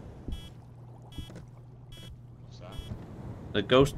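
An electronic device beeps in short bursts.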